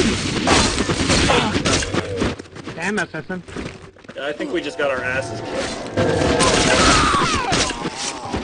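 Weapons clash and strike in a close fight.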